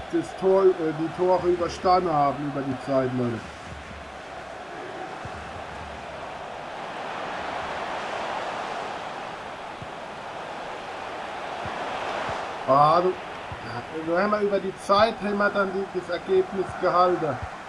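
A stadium crowd murmurs and roars steadily, swelling now and then.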